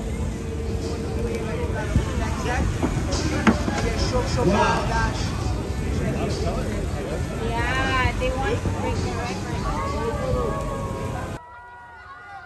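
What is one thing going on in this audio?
Fireworks pop and crackle in the distance.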